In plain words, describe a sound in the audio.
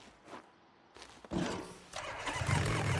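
A motorcycle engine starts up.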